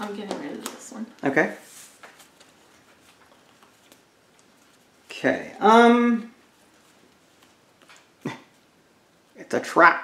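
Playing cards rustle and slide as they are handled.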